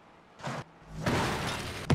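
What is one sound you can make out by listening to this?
A car crashes and tumbles with a heavy thud.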